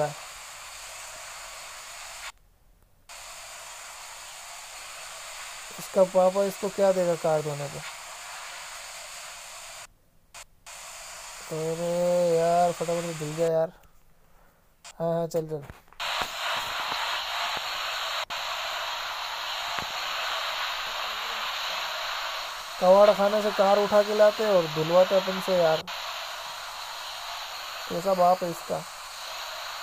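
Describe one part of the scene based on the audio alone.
A pressure washer sprays water with a steady hiss.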